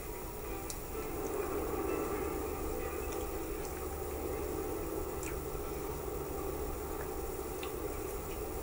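A motorcycle engine hums steadily through a small loudspeaker.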